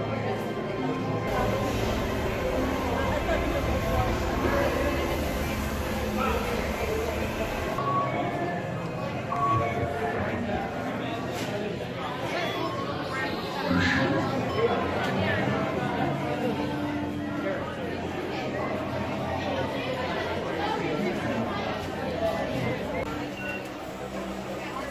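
A crowd murmurs all around.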